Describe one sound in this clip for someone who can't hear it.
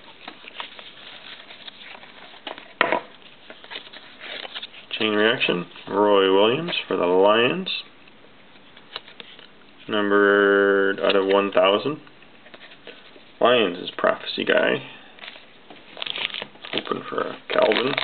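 Trading cards rustle and slide against each other as they are flipped.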